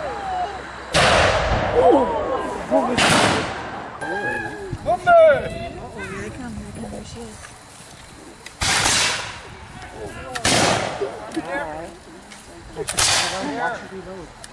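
Muskets fire loudly outdoors, each shot echoing.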